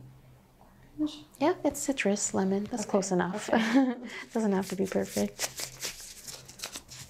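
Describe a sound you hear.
A young woman answers nearby, talking and laughing lightly.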